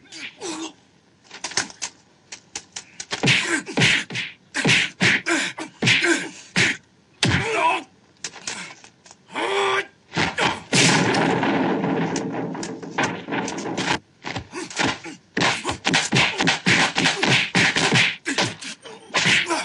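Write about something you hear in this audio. A man grunts and cries out in pain.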